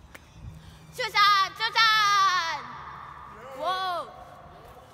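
A young girl screams loudly in an echoing tunnel.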